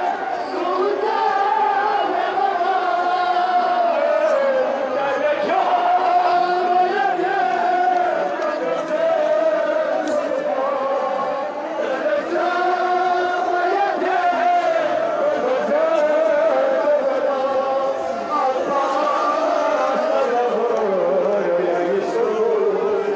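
A man's voice leads the chant loudly through a loudspeaker.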